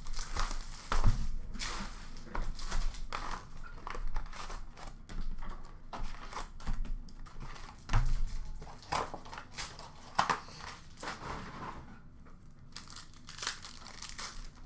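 Small boxes clack against a glass counter.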